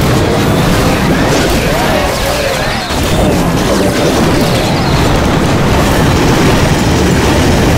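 Game explosions and blasts boom steadily as a battle rages.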